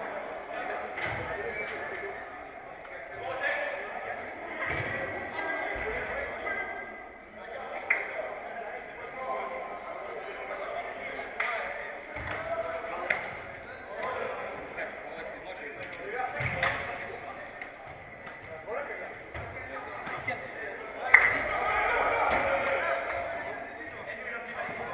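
Men shout and call out to one another in an echoing hall.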